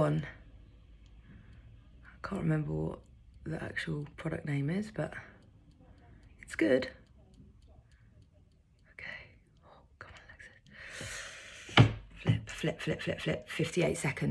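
A woman speaks calmly and close to the microphone, pausing often.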